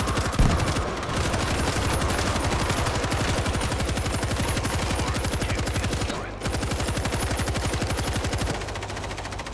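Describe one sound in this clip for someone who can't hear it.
A heavy machine gun fires in a fast, steady stream.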